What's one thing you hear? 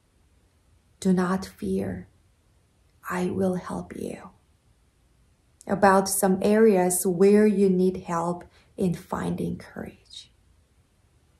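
A young woman speaks calmly and clearly, close to a microphone.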